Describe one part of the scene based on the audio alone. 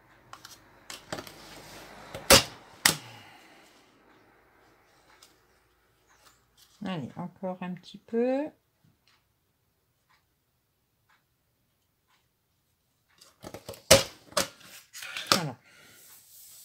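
A plastic punch clicks and snaps against a table.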